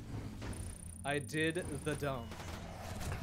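A young man talks animatedly into a close microphone.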